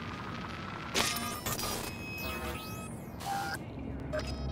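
An electronic device beeps and buzzes.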